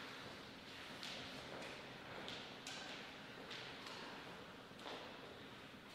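Sneakers step on a rubber sports floor.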